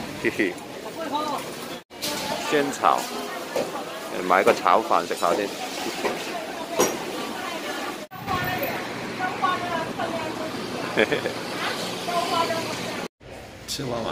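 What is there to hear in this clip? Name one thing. Crowd chatter fills a busy market.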